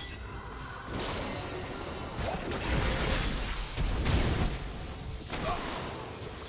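Magic blasts and impacts crackle and boom in a fast game battle.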